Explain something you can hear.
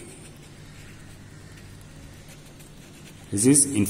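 A marker pen squeaks across paper.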